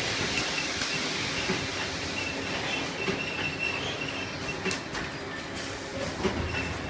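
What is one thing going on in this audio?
Machine parts clatter and click.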